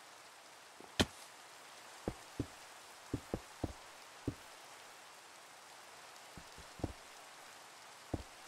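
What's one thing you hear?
Stone blocks are placed with short, dull knocks.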